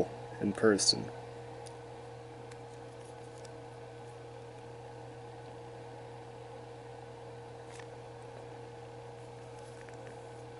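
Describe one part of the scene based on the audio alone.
Fingers turn a small plastic figure with faint clicks and rubbing.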